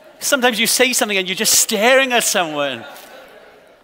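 A man speaks loudly and with animation through a microphone in a reverberant hall.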